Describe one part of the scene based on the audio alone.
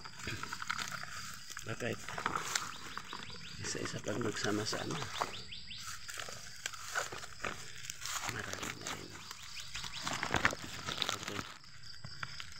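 Leaves and branches rustle as someone pushes through dense brush.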